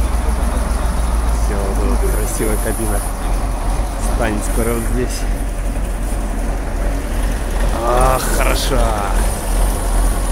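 A man talks outdoors.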